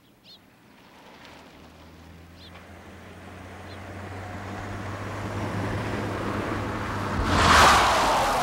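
A car engine approaches and grows louder.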